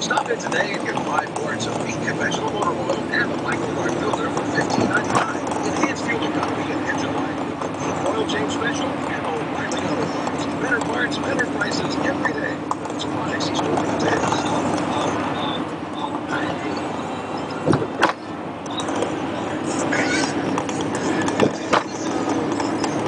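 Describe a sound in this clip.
Tyres and an engine hum steadily inside a moving car.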